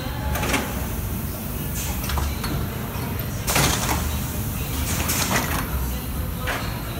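Machine parts clack and hiss at intervals.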